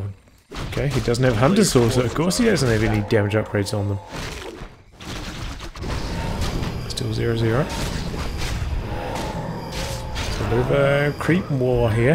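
Weapons clash and magic blasts burst in a fantasy battle.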